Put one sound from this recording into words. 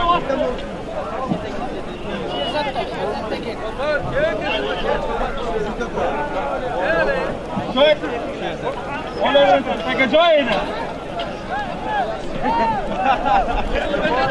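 A large outdoor crowd of men shouts and cheers throughout.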